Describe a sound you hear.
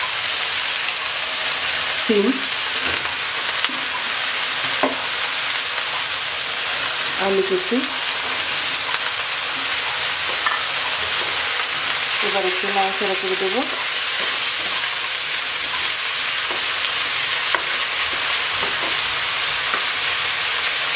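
Vegetables sizzle steadily in a hot pan.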